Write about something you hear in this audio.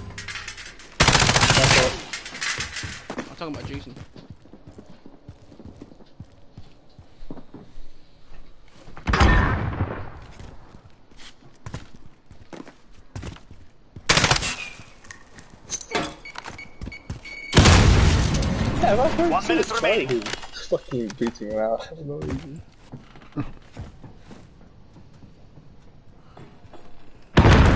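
Bursts of gunfire from a shooting game crack loudly.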